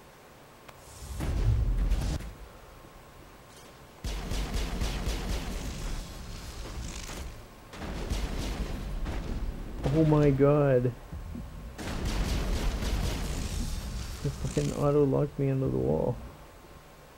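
Gunfire and blasts boom in loud bursts.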